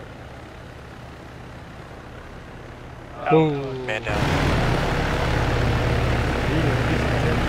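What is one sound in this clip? A helicopter's rotor thrums steadily nearby, growing louder.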